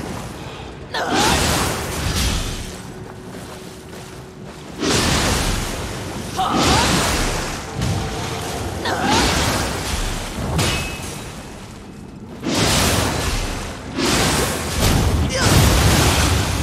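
Metal weapons clash and strike with heavy impacts.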